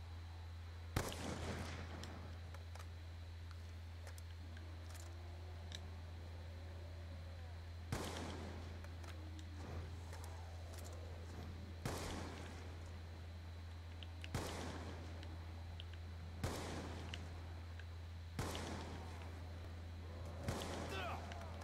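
A rifle fires loud single shots that echo briefly.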